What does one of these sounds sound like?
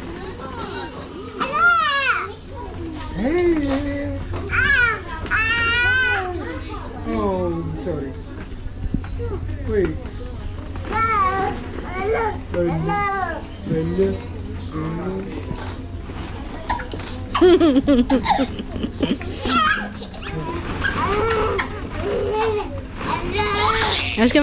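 A toddler squeals and babbles close by.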